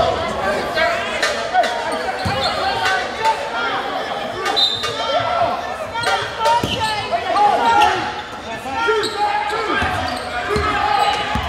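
Spectators murmur and chatter in the stands.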